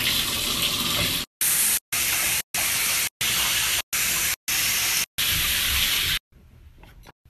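Water runs from a tap in a steady rush.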